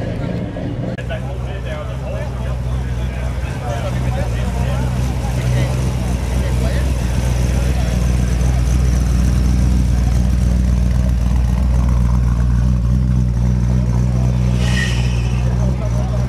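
A second old car engine rumbles deeply as the car rolls slowly by.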